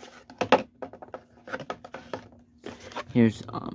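Plastic packaging crinkles and rattles as a hand handles it.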